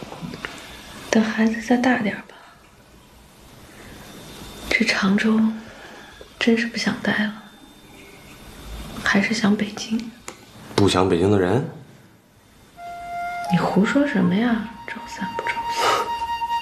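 A young woman speaks softly and calmly nearby.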